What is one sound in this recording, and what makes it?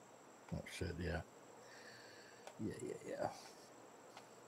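A man speaks briefly and casually, close to a headset microphone.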